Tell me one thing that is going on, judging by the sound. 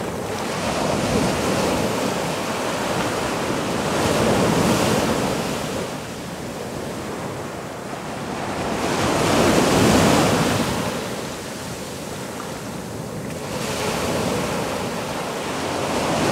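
Water splashes around a person lying in the shallows.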